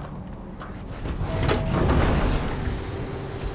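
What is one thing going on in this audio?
A heavy airlock door hisses and slides open.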